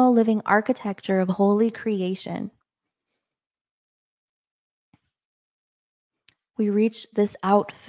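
A young woman speaks calmly and close into a microphone, with pauses.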